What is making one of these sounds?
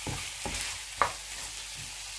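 A spatula scrapes and clacks against a frying pan.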